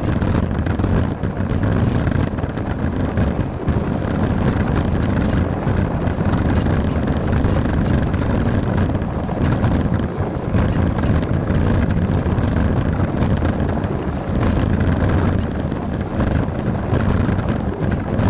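Wind buffets loudly past the microphone.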